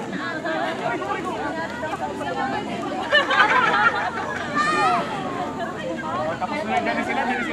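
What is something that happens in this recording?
A crowd of young people chatters and laughs nearby outdoors.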